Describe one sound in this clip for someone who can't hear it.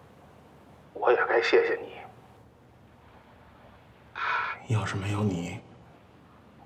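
A middle-aged woman speaks with emotion into a phone.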